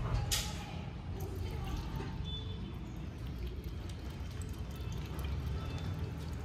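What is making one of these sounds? A cat laps up milk from a metal bowl.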